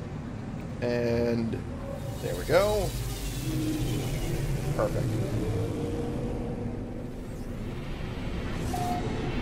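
A spaceship engine rumbles steadily.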